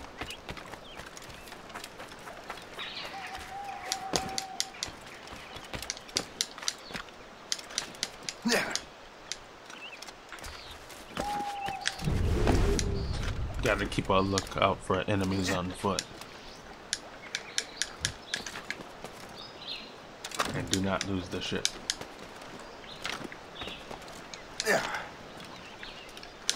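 Footsteps patter quickly over ground.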